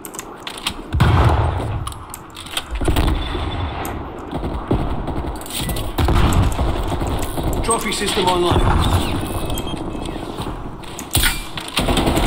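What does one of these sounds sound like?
A sniper rifle fires with a sharp crack.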